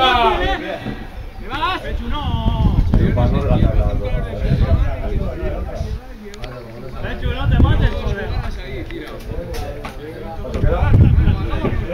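Young men call out to each other on an open field.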